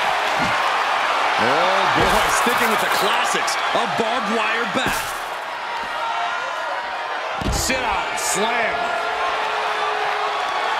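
A crowd cheers and roars steadily.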